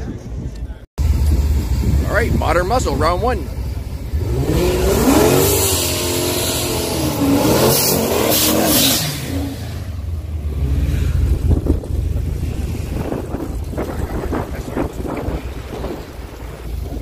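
A powerful car engine rumbles and revs up and down nearby.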